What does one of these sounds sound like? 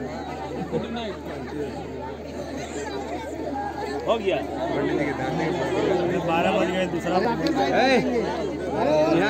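A crowd of men and women talk and chatter close by.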